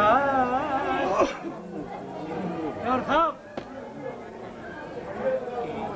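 An older man talks animatedly and close by.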